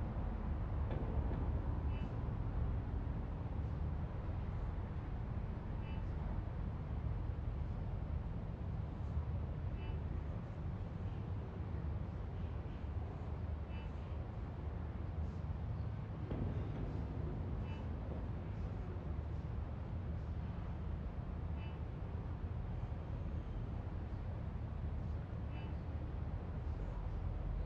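A low, steady hum drones throughout.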